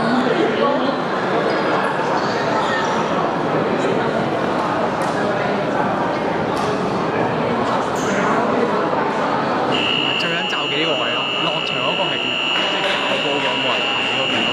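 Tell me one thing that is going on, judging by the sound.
A crowd of young men and women chatter in a large echoing hall.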